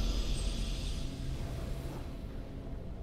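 A bright magical chime rings out and fades.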